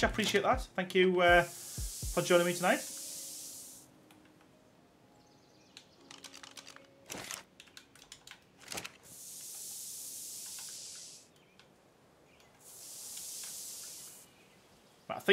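A spray gun hisses in short bursts.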